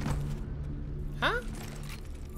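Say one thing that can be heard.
A young man shouts loudly close to a microphone.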